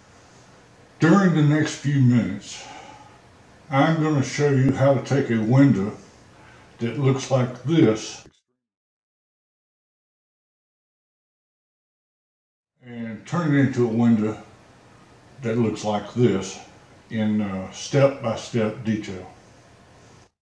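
An elderly man talks calmly and close to a microphone.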